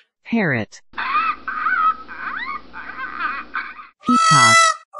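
Parrots squawk and chatter.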